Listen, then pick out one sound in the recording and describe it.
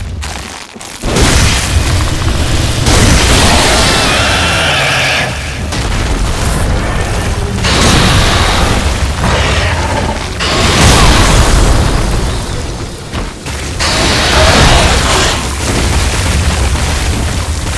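A monstrous beast roars and snarls loudly.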